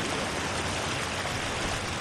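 Water sloshes and splashes underfoot.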